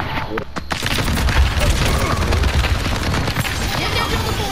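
A futuristic energy gun fires rapid bursts of shots.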